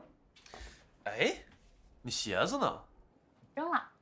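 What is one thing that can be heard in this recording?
A young woman speaks nearby, asking in a surprised tone.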